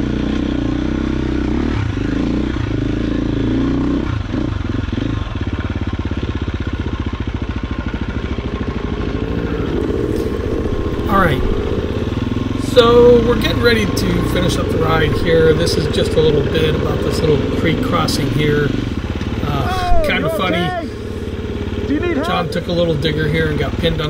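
A dirt bike engine runs close by, rumbling steadily.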